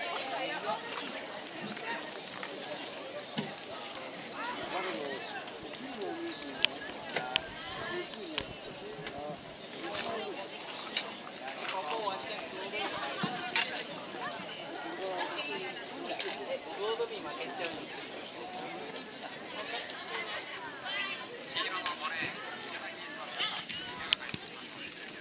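A crowd of young people cheers and shouts outdoors nearby.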